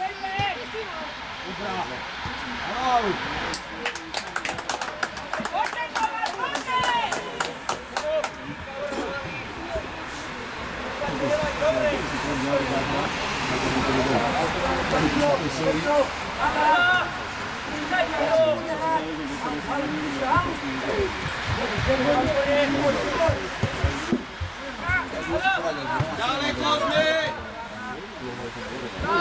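Young players shout and call to each other across an open pitch.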